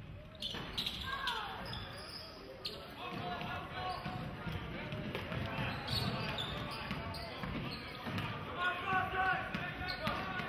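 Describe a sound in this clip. A crowd murmurs and cheers in an echoing gym.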